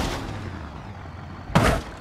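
A car thuds hard onto the road after a jump.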